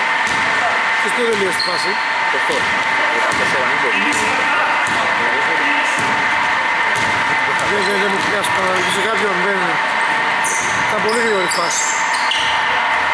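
Adult men shout to each other during play in an echoing hall.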